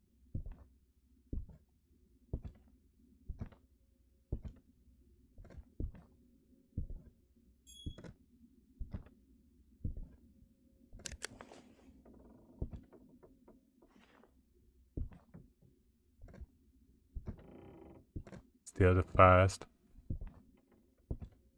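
Footsteps thud slowly and evenly on a wooden floor.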